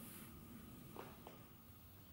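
Hands thump softly on a rug.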